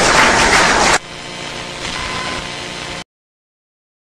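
A crowd murmurs and chatters.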